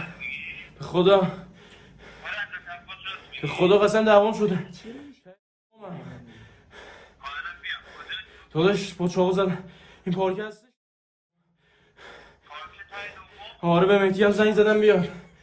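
A young man speaks with animation close to a phone's microphone.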